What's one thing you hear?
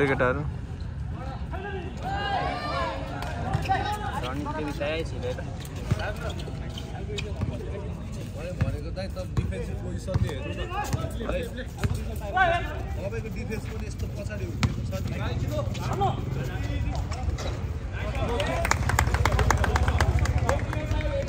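A basketball bounces on a hard outdoor court.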